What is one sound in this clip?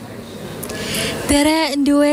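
A young woman reads out news calmly into a microphone.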